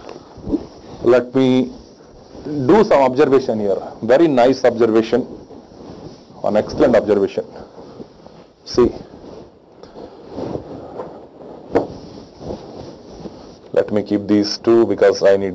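A man lectures with animation, close to a microphone, in bursts with pauses.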